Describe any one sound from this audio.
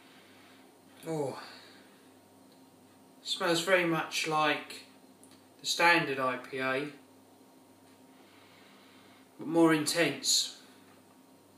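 A man speaks calmly and close by in short bursts.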